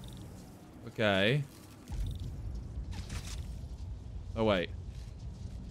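A tether shot zaps with a sweeping electronic tone.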